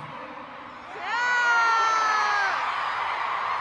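A young woman close by lets out a long, high-pitched scream.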